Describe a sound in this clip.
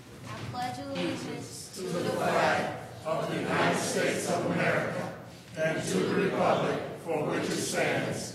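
A crowd of people murmur and talk in an echoing hall.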